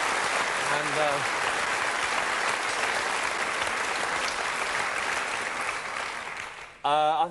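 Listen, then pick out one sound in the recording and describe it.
A man speaks into a microphone in a lively voice.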